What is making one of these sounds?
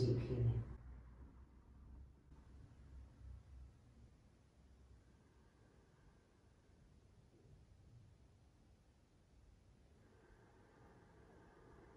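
A woman breathes slowly and evenly.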